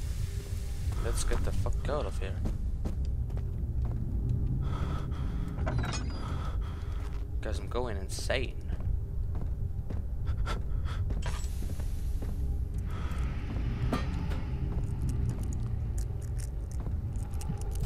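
Footsteps creak and thud on wooden floorboards.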